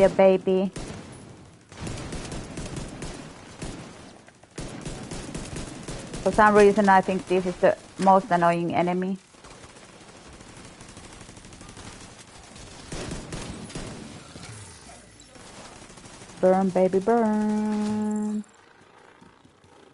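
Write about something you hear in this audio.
Explosions boom and crackle with fire.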